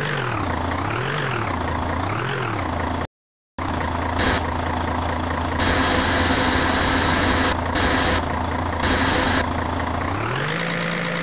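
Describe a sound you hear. A small engine hums steadily and revs up and down.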